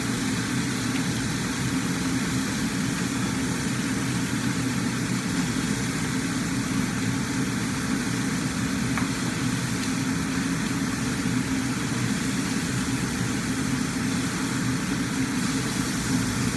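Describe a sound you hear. A metal spatula scrapes against a wok.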